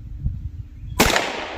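A rifle fires a single sharp, loud shot close by.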